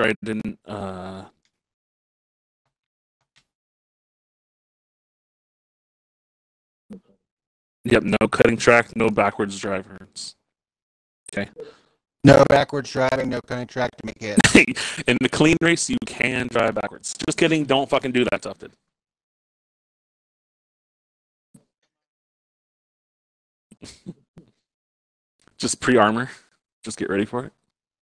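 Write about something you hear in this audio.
A man talks casually into a microphone, in short bursts with pauses.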